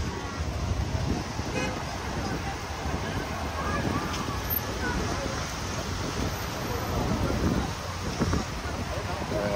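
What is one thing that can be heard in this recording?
Motorbikes and traffic rumble by.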